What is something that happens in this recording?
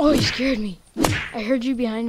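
A pickaxe strikes a body with a wet thud.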